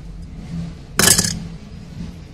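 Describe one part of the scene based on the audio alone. A toy car clatters down onto a ceramic bowl.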